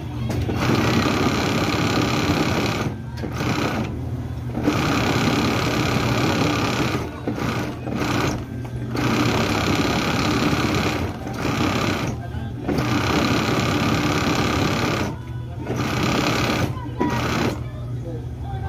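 A sewing machine runs in fast bursts, stopping and starting.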